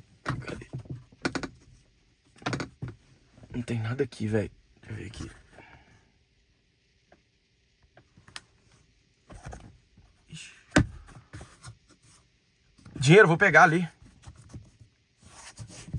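A car sun visor clicks as it is flipped.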